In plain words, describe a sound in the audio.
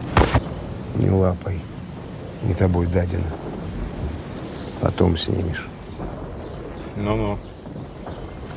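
A middle-aged man speaks firmly at close range.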